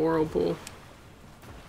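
A boy speaks briefly and close to a microphone.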